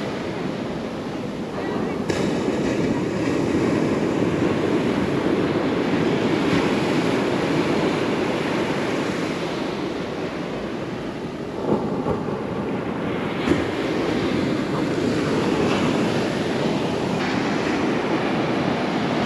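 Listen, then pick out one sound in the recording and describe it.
Waves break and crash onto a beach.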